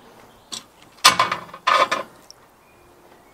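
Metal tongs clink against skewers on a grill.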